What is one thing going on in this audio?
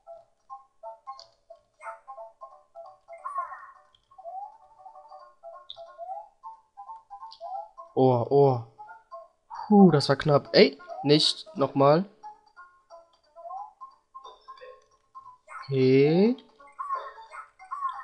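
Bouncy electronic game music plays throughout.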